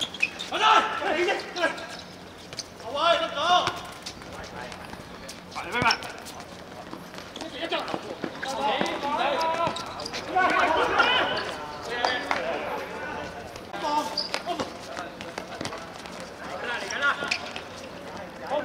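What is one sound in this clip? Young men shout to each other across an open court.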